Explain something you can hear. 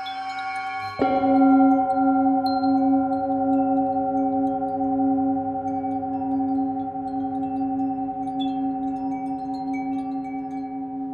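A metal singing bowl is struck and rings out loudly.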